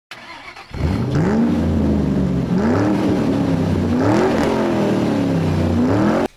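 A motorcycle engine revs loudly, rising and falling again and again.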